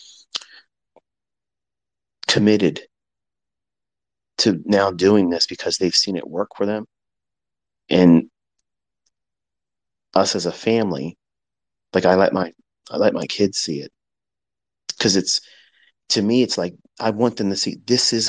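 A man speaks calmly and clearly close to a microphone, in short phrases with pauses.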